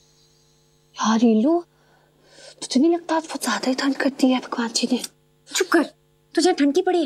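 A young woman whispers anxiously, close by.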